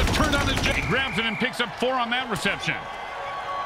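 Players crash together with heavy thuds.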